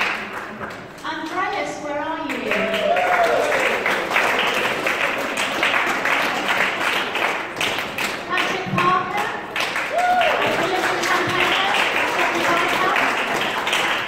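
A group of men and women sing and chant together loudly.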